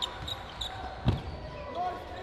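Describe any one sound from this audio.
A ball thuds sharply against the floor.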